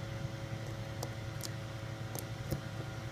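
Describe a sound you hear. A small plastic plug clicks and taps against a socket.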